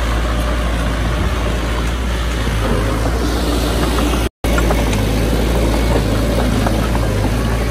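Soil and rubble scrape and crunch as a bulldozer blade pushes them.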